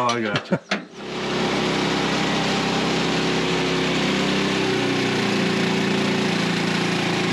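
A band saw cuts through a log with a steady whine.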